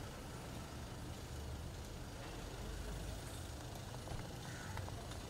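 A car engine idles nearby with a low, steady rumble.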